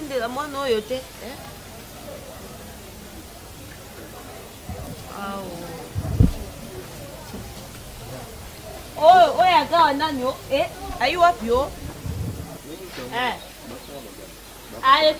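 A young woman speaks with emotion, close by.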